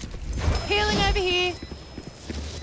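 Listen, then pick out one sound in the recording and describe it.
A magical spell crackles and hums in a video game.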